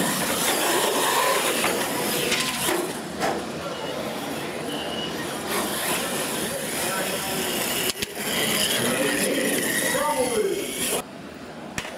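Radio-controlled monster trucks race and jump on a dirt floor.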